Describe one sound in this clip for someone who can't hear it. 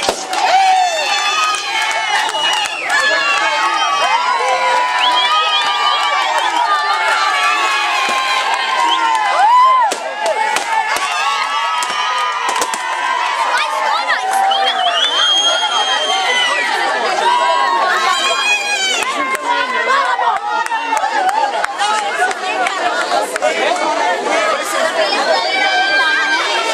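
Young women and girls chatter and call out loudly all around.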